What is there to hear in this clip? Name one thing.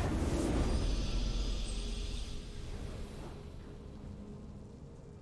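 A triumphant musical swell plays and slowly fades.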